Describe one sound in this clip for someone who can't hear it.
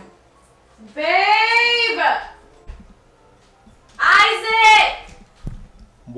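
A young man calls out loudly through cupped hands.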